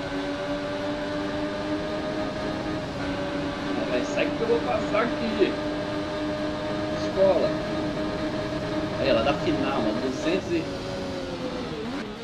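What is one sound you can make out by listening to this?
A motorcycle engine drones at high revs, holding a steady pitch.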